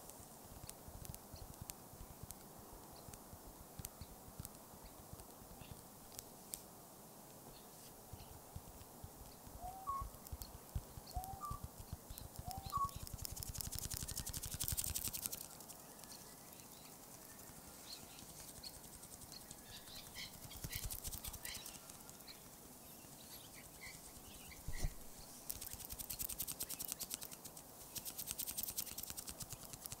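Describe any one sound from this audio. Leaves rustle in a light wind outdoors.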